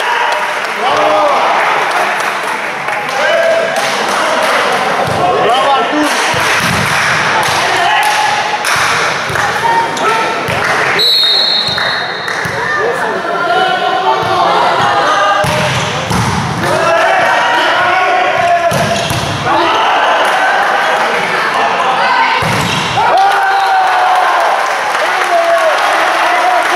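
A crowd of spectators cheers and chatters in a large echoing hall.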